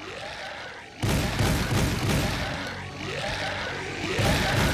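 A large monster roars loudly.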